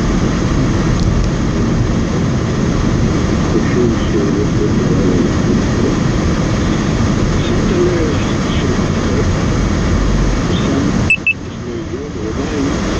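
A car engine hums and tyres roll steadily on a paved road.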